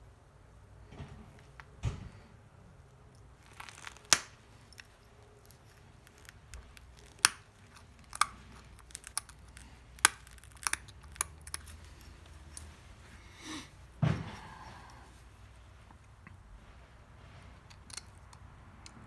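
A tool presses flakes off a stone with sharp clicks and snaps.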